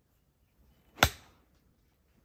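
A golf club strikes a ball outdoors with a sharp crack.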